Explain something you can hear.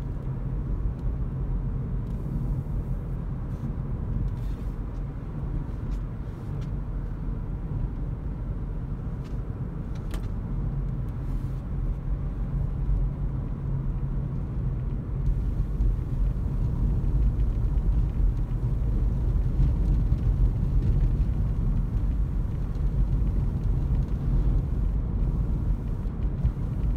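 Tyres rumble on the road, louder toward the end.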